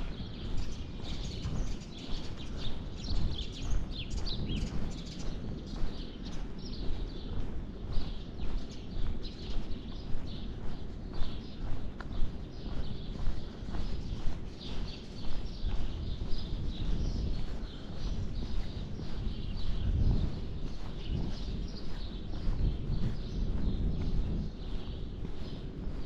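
Footsteps tread steadily on a paved path.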